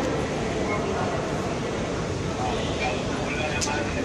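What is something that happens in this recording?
A man talks nearby in a large echoing hall.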